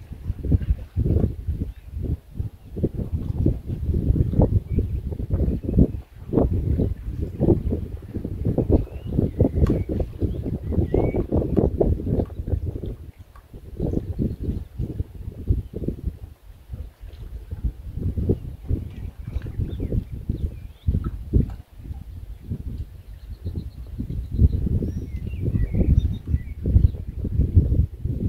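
Wind gusts and buffets outdoors throughout.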